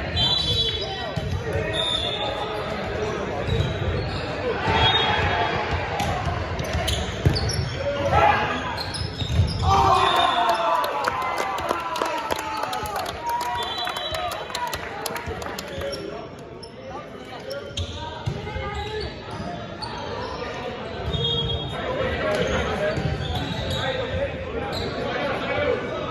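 Shoes squeak on a gym floor.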